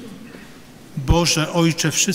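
Men sing together in a large echoing hall.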